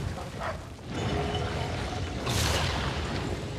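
A large creature's heavy footsteps thud as it runs.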